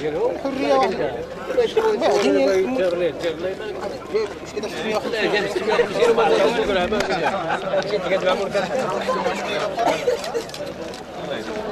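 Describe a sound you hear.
A crowd of men chat at close range, with many voices overlapping.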